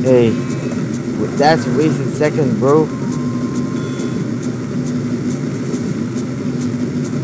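Bouncy electronic game music plays steadily.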